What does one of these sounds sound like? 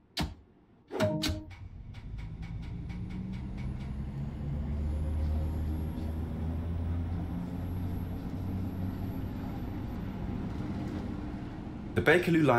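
A train's electric motors hum low and rise as it pulls away in a tunnel.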